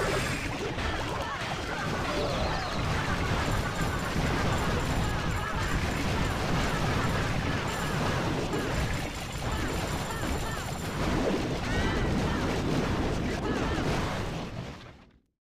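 Cartoonish battle sounds clash and explode in a busy, steady din.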